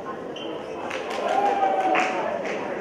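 A young woman speaks through a microphone and loudspeakers in a large echoing hall.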